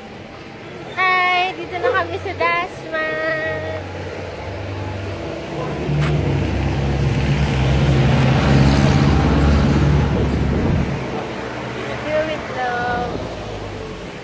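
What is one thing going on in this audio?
A young woman talks cheerfully, close by.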